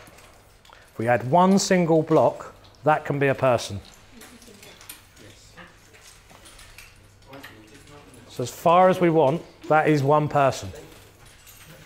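A middle-aged man speaks calmly to a room, pausing between phrases.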